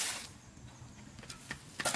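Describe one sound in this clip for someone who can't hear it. Loose soil is tossed from a shovel and patters onto a heap outdoors.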